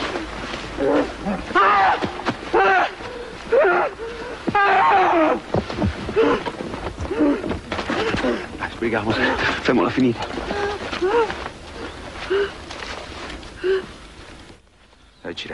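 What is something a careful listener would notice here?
Several men shout urgently.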